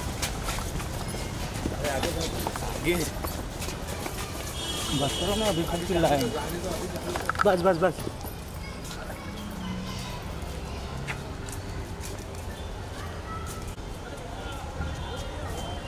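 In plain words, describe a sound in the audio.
Footsteps scuff on pavement.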